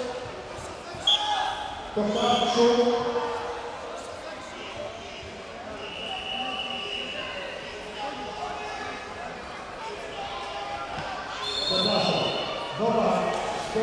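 Adults in the crowd shout encouragement loudly.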